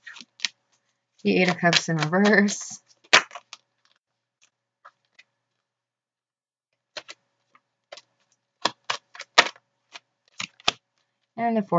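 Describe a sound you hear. Playing cards are laid down on a soft cloth with light taps.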